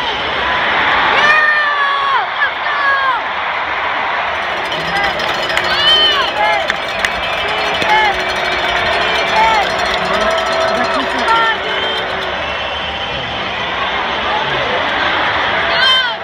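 Nearby spectators shout and whoop.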